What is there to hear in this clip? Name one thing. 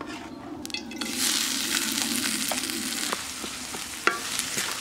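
Onions hiss and crackle loudly as they fry.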